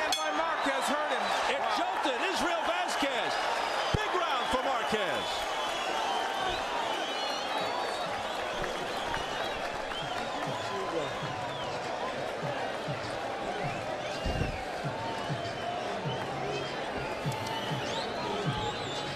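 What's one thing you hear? A large crowd roars and cheers throughout, echoing in a big arena.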